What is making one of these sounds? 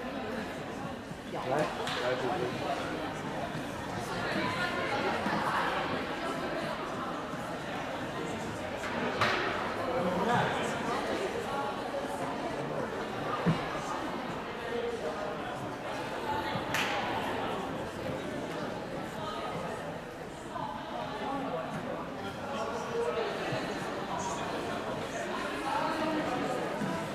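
Players shout to each other on the court.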